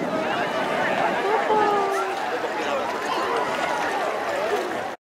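Water splashes gently around bathers.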